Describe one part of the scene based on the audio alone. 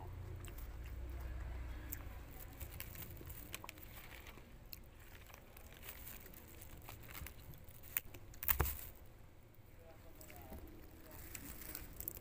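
Leaves rustle and crunch as they are picked and torn.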